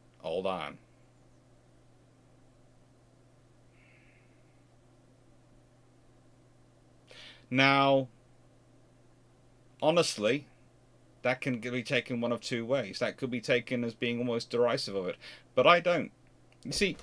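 A man speaks calmly and close to a microphone, with pauses.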